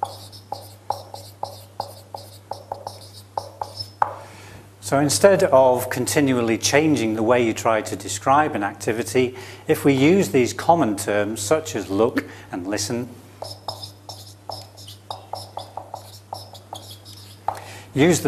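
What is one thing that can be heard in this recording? A marker squeaks and taps on a whiteboard in quick strokes.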